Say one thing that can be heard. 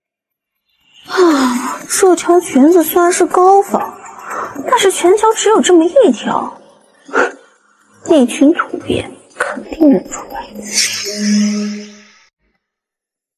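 A young woman speaks to herself in a low, scornful voice.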